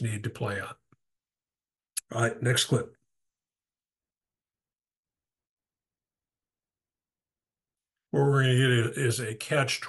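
A man talks close to a microphone in a calm, commenting voice, with long pauses.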